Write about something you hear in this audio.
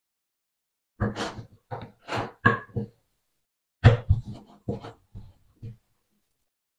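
A wooden rolling pin thumps and rolls across a board.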